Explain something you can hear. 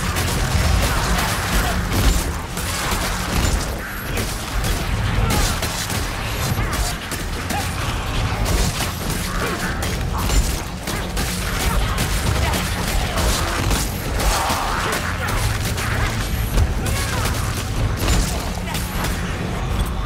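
Monsters snarl and growl in a loud rush.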